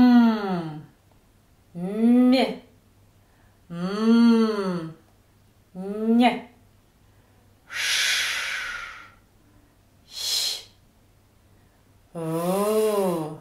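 A woman close by vocalizes in short, sustained tones that swell and slide in pitch, with pauses between them.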